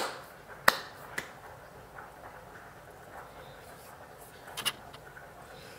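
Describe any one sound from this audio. Hands clap softly a few times.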